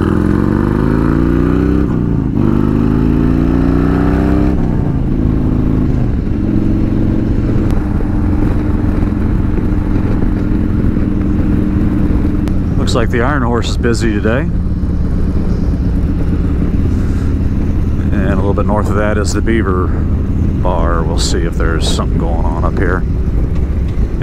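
A motorcycle engine rumbles steadily, rising and falling in pitch as it shifts gears.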